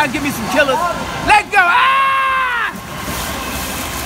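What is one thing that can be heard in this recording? A boy dives and lands in the water with a splash.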